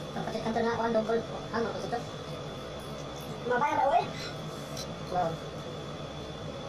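Men slurp noodles noisily.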